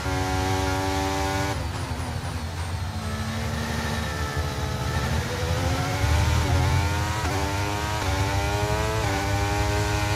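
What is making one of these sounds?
A racing car engine screams at high revs, dropping as it shifts down and then climbing through the gears.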